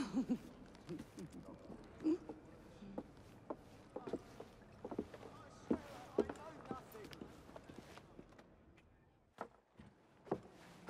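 Footsteps knock on wooden boards.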